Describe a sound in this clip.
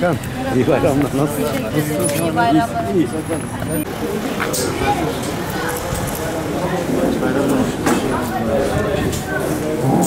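Several men and a woman talk and greet one another nearby, outdoors.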